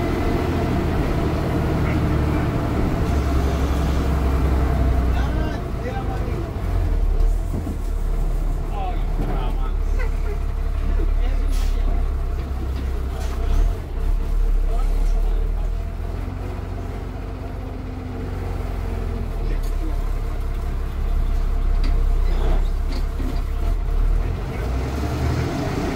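The bus body rattles and creaks over the road.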